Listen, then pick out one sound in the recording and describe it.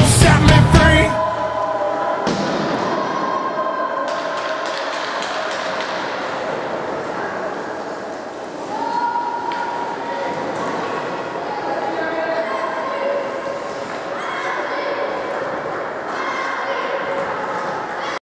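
Young players chatter and call out in a large echoing rink.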